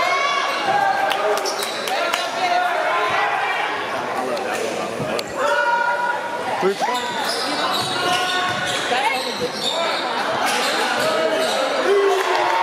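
A crowd in an echoing gym shouts and cheers.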